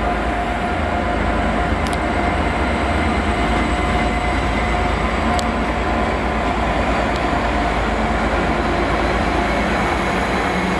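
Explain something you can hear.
An electric train's motors whine steadily as the train passes.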